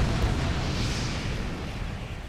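A missile whooshes past.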